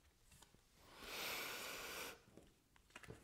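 Cards shuffle and slide on a table.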